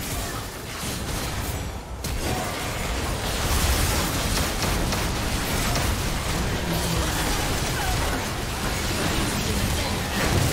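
Magic blasts and impacts crackle and burst in a video game battle.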